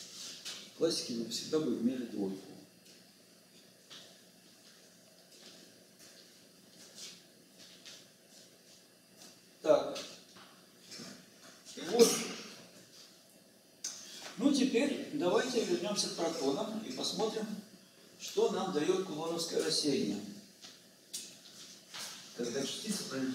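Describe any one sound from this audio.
An elderly man lectures calmly, pausing between phrases.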